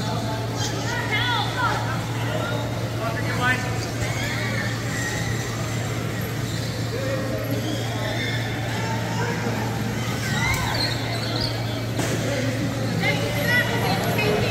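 Wheelchair tyres squeak on a hard floor.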